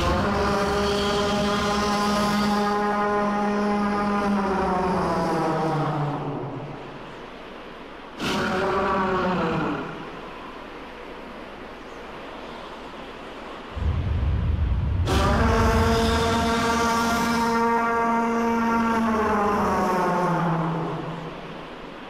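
A huge creature lets out a long, wavering roar that slowly drops in pitch.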